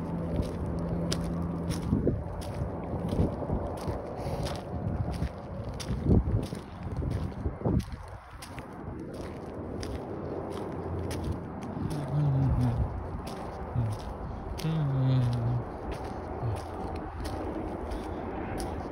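Footsteps crunch on a paved path at a steady walking pace.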